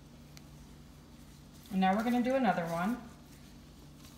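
Soft leaves rustle and crinkle as they are unfolded by hand.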